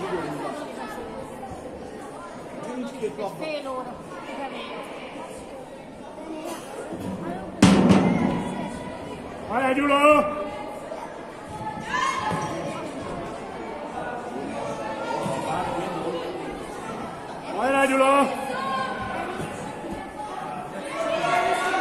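Children shout and cheer in a large echoing hall.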